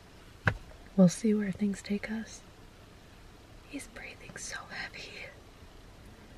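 A young woman talks casually, close by.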